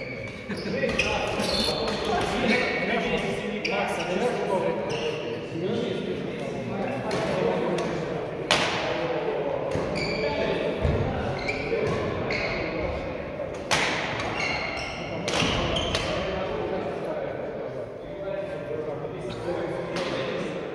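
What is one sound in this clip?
Shoes squeak on a sports floor.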